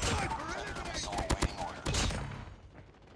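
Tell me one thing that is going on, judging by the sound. An automatic gun fires.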